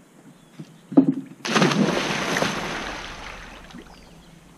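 A girl splashes into a pool of water.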